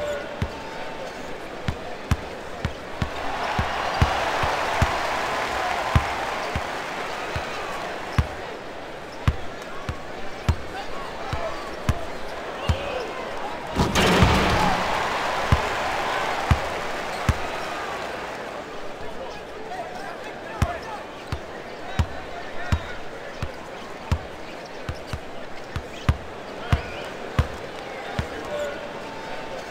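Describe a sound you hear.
A basketball bounces steadily on a hardwood court.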